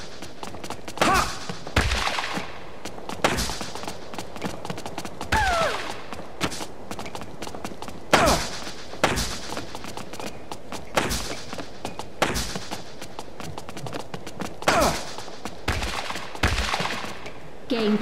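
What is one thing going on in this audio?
Tennis balls are struck back and forth with sharp pops.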